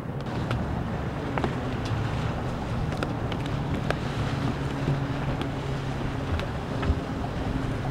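Footsteps knock on a boat's deck.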